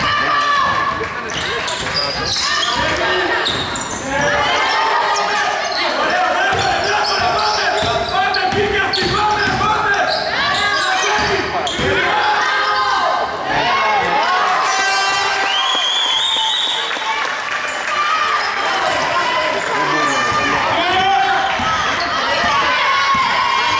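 Players shout and call out across a large echoing hall.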